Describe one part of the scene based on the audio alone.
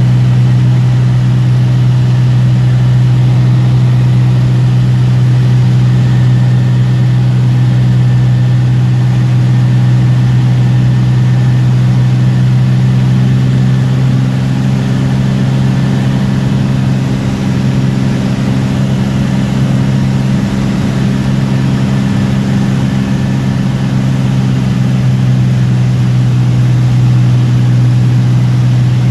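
Rain patters against a windscreen.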